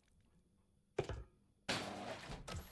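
A button clicks as it is pressed.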